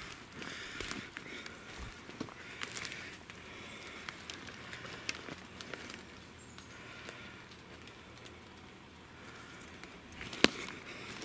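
Footsteps crunch and rustle over a forest floor of needles and twigs.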